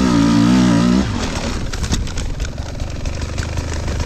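A dirt bike tips over and thuds into the grass.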